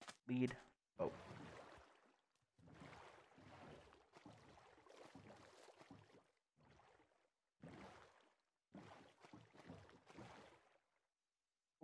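A wooden boat's paddles splash steadily through water.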